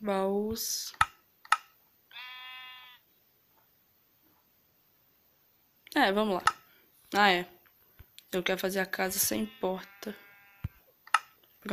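Short clicks sound.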